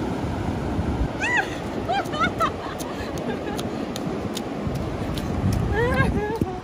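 A young girl squeals and shouts excitedly nearby.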